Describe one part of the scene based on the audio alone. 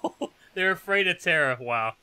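A young man laughs loudly.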